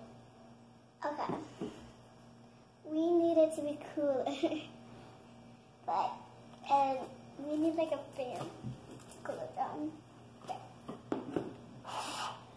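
A young girl talks animatedly close by.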